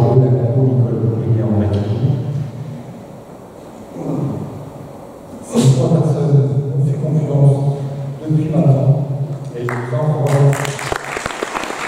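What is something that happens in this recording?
A man speaks through a microphone and loudspeakers in a large echoing hall.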